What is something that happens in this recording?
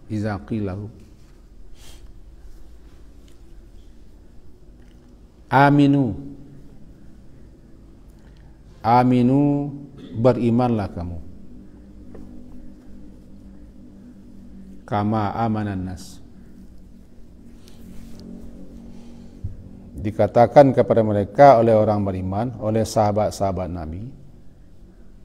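An elderly man speaks slowly into a close microphone, with long pauses.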